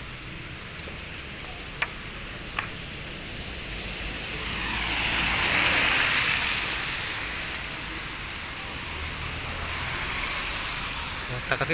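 Rain falls steadily outdoors, pattering on wet ground and cars.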